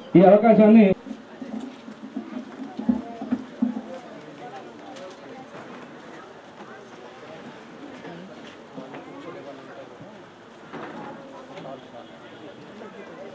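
A crowd murmurs softly nearby.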